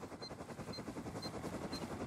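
Footsteps tread quickly over grass.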